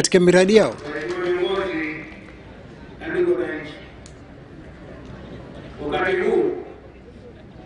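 An elderly man reads out slowly through a microphone and loudspeakers.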